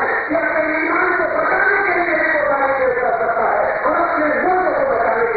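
An elderly man preaches forcefully into a microphone, his voice echoing through loudspeakers.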